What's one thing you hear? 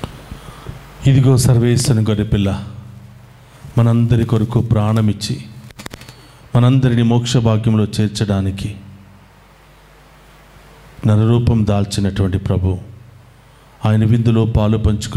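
A man chants loudly through a microphone in short phrases with pauses between them.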